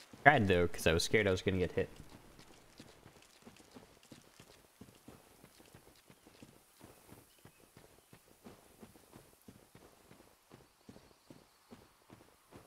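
Armoured footsteps tread steadily over soft ground.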